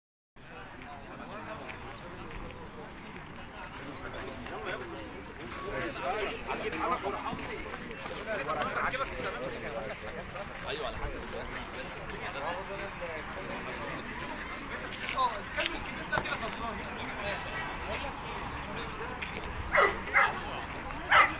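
A crowd of men chatter outdoors nearby.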